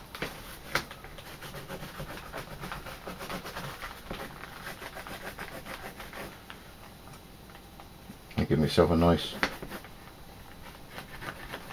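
A pen scratches as it marks leather.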